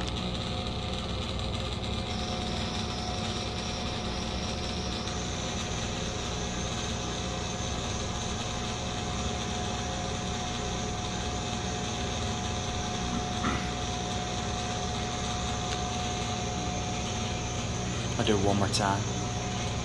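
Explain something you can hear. A ventilation fan hums and blows air steadily overhead.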